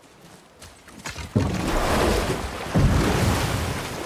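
A wooden boat scrapes as it is pushed into water.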